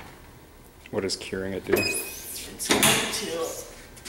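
A heat press lid clunks shut.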